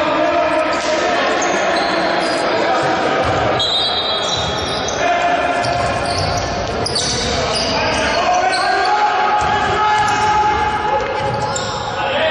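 Sneakers squeak sharply on a court in a large echoing hall.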